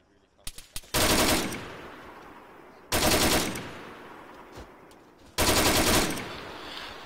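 A machine gun fires loud, rapid bursts.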